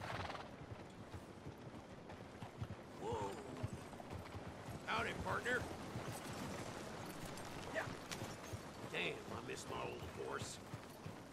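Horse hooves clop steadily on dirt.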